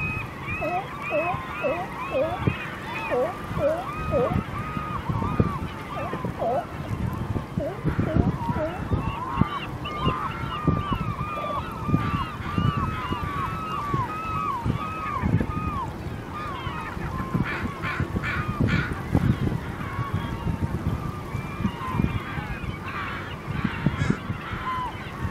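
Many gulls call shrilly and repeatedly outdoors.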